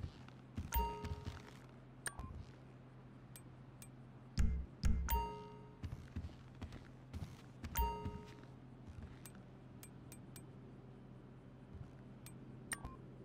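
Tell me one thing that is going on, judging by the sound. Short electronic menu clicks and chimes sound now and then.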